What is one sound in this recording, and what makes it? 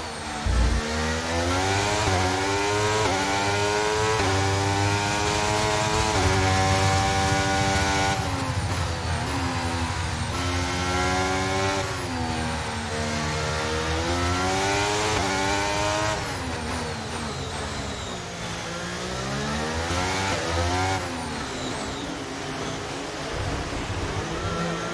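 A racing car engine screams, rising and falling in pitch.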